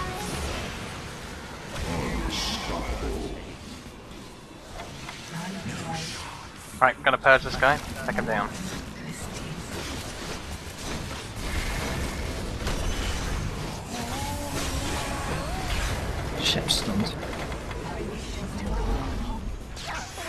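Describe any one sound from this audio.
Game spell effects and fighting sounds crackle and boom.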